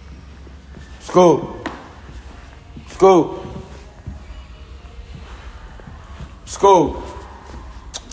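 A young man shouts loudly in short bursts, close by.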